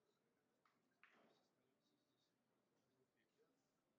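Billiard balls knock together on the table.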